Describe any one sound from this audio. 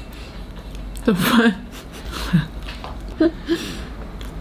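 A young woman chews food with soft crunching.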